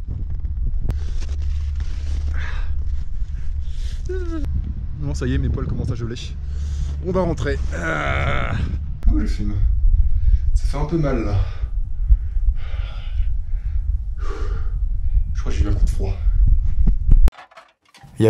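A young man talks breathlessly close to a microphone.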